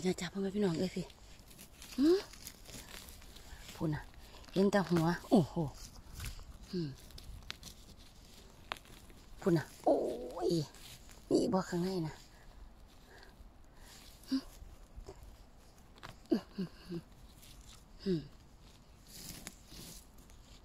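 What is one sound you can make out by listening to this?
Dry pine needles and twigs rustle and crackle as a gloved hand digs through them.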